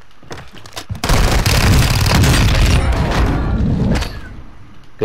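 Rapid gunfire blasts close by.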